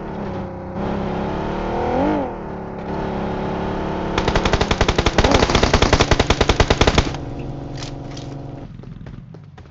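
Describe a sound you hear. A car engine hums steadily, then revs up and rattles.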